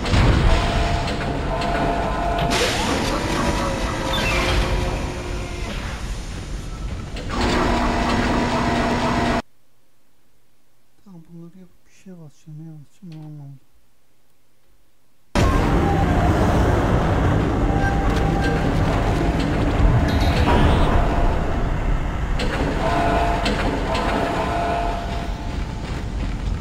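Heavy boots clank on metal floors.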